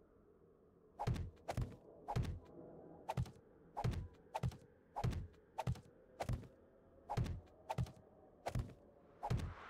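Heavy blows thud against a block at a steady pace.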